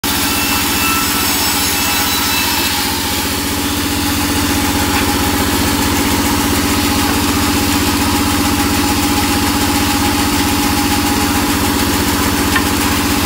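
A band saw runs with a steady loud whine and hum.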